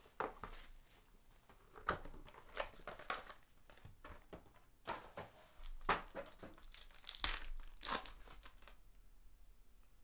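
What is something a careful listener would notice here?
Foil card wrappers crinkle and tear.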